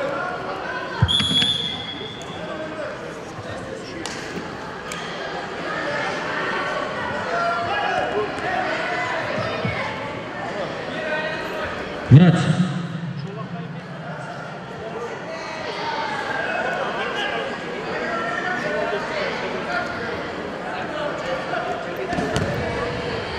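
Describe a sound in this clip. Feet shuffle and thud on a wrestling mat.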